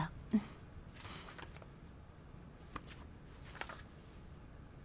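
Magazine pages rustle as they turn.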